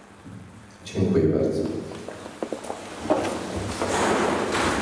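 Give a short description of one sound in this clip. People shuffle and sit down on chairs.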